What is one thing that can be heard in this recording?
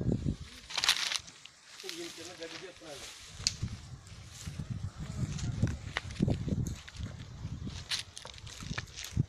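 Footsteps swish and crunch through tall dry grass.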